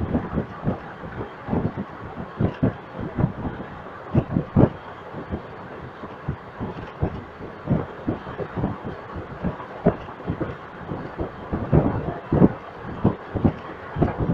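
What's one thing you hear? A train rumbles along the track, its wheels knocking over rail joints.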